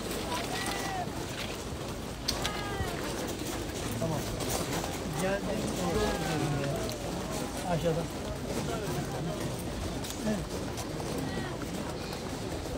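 A large crowd of men murmurs and talks all around, close by.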